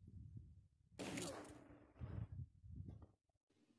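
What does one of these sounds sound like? A bicycle lands hard on dirt with a thud after a jump.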